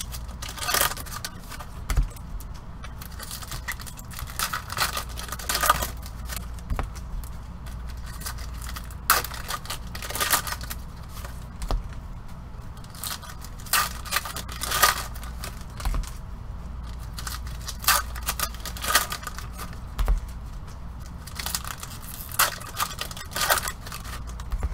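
Gloved hands rustle and crinkle foil card packs close by.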